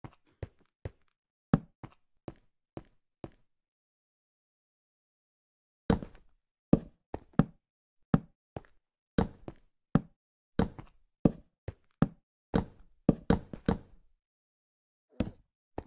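Stone blocks are set down in a video game with short, dull knocks.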